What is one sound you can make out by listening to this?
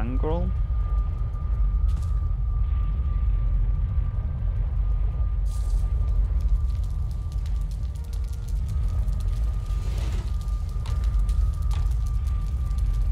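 A fire roars and crackles steadily.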